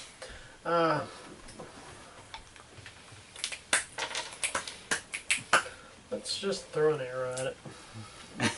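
A man speaks nearby in short bursts.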